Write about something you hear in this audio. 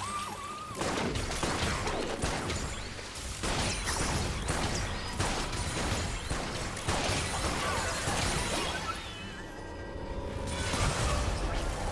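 Video game spells and blows crackle and burst in a hectic fight.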